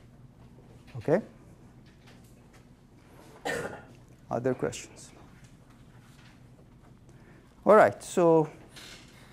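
A middle-aged man speaks in short bursts through a lapel microphone.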